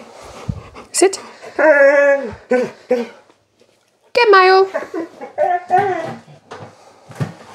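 A woman talks to a dog in a high, cheerful voice nearby.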